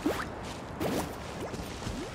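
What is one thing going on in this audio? Swords whoosh through the air in quick slashes.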